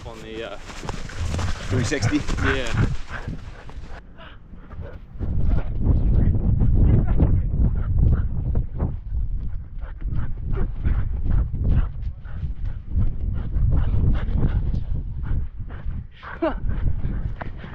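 Dogs growl and grumble playfully up close.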